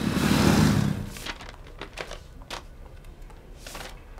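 Sheets of paper rustle in a man's hands.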